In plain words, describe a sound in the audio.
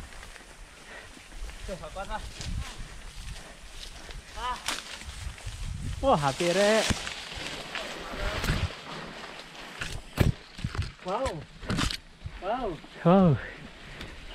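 A mountain bike's tyres roll and crunch over a dirt trail.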